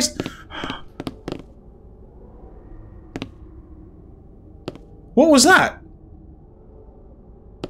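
Footsteps sound on a hard floor.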